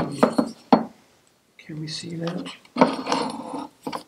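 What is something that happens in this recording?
A cloth rubs and wipes against metal.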